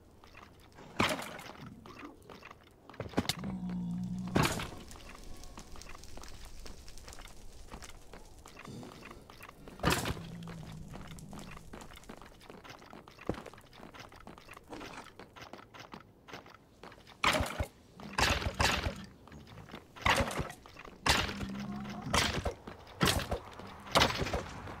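A sword swings and strikes with sharp thuds.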